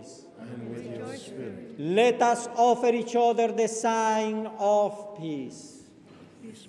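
A man chants loudly through a microphone in an echoing hall.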